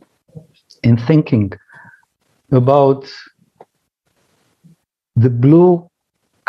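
A middle-aged man speaks calmly in short phrases over an online call.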